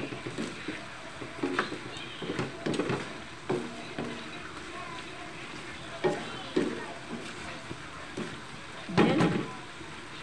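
Thick sauce sizzles and bubbles in a wok.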